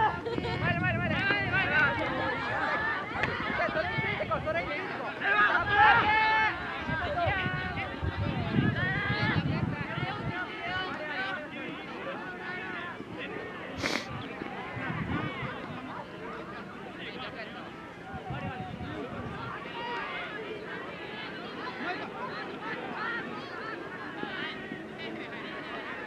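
Young men shout and call out to each other outdoors, some way off.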